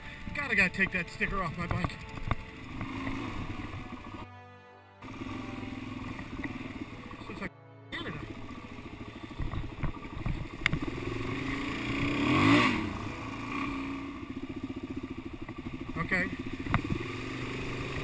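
A dirt bike engine revs and putters up close.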